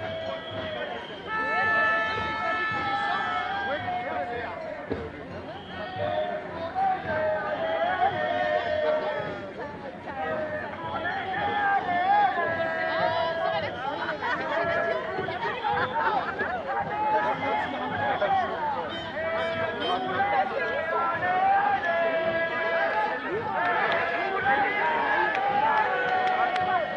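Many people talk and shout nearby in a crowd.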